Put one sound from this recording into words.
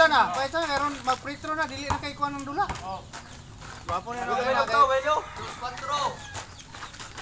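Young men shout and call out to each other nearby, outdoors.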